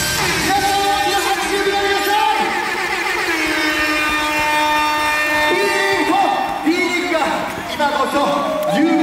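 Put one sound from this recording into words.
Loud music with a steady synthesizer plays through an arena's sound system.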